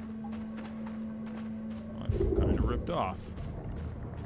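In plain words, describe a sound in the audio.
Footsteps tread softly over wet ground.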